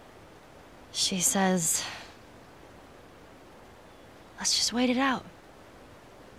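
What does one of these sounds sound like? A young girl speaks softly and close by.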